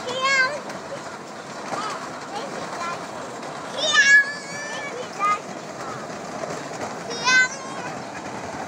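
Young children squeal and shout with excitement close by.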